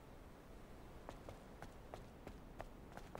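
Quick footsteps patter across a hard tiled floor.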